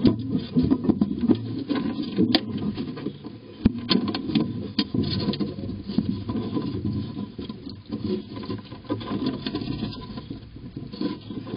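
Small clicks and taps sound as mice handle seeds.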